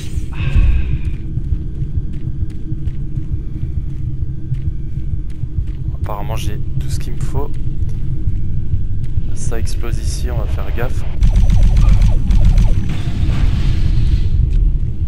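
A deep mechanical drone rumbles steadily throughout.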